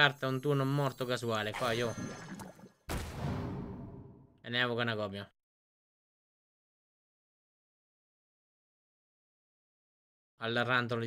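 A man speaks with animation close to a headset microphone.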